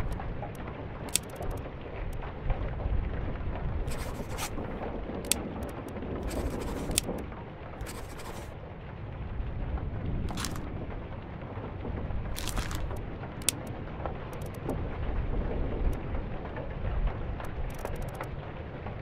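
Soft clicks tap.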